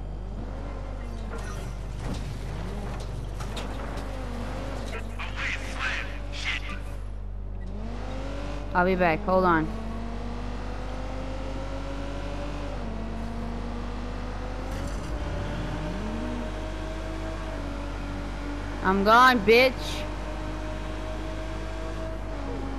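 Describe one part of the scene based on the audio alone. A car engine revs and hums as it speeds along.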